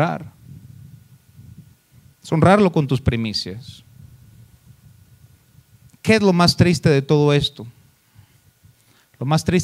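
A man speaks with emphasis into a microphone, in bursts with pauses.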